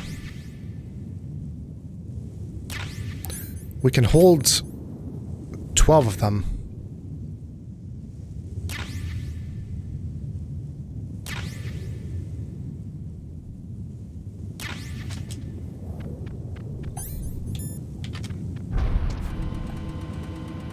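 Wind blows steadily in a low, hollow rush.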